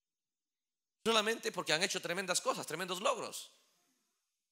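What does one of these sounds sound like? A man speaks with animation into a microphone in a reverberant hall.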